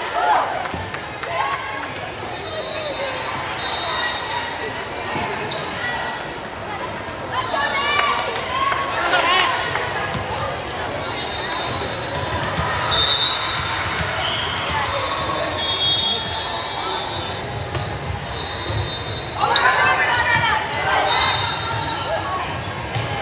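Voices of players and spectators chatter and call out throughout a large echoing gym.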